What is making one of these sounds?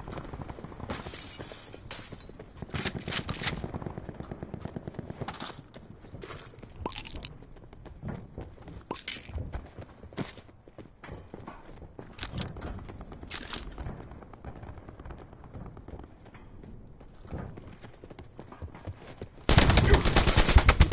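Gunfire from a video game crackles in short bursts.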